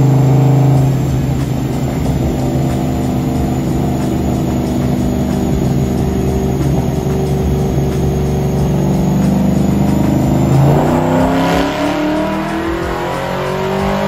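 A truck engine roars loudly and steadily, then revs down.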